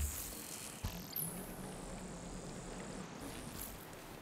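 A crackling energy blast whooshes past.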